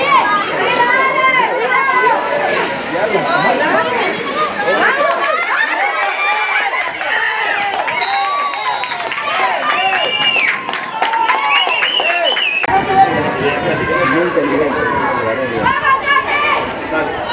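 Young women shout and cheer outdoors.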